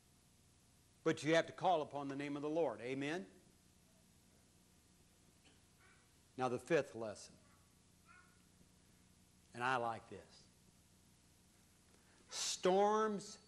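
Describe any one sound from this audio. An elderly man speaks slowly through a microphone in a room with a slight echo, pausing between phrases.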